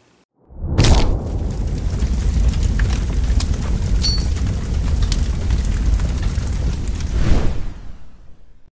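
Flames roar with sharp crackles.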